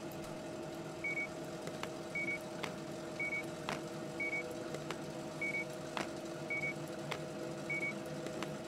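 A checkout scanner beeps at a steady pace.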